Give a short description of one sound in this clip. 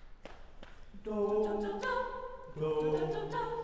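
A group of young men and women sing together without instruments.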